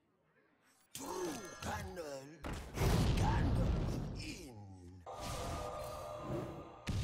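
A magic spell bursts with a loud whooshing crackle.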